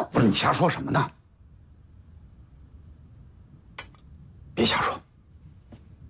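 A man speaks sharply and close by, in short bursts.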